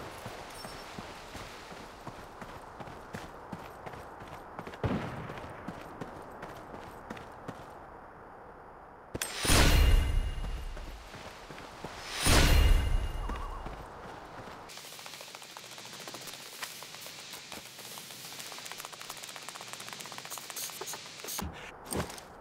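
Footsteps tread through grass.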